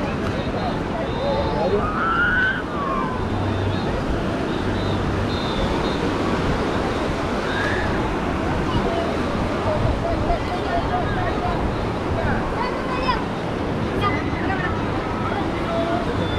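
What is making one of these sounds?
Children shriek and call out in play.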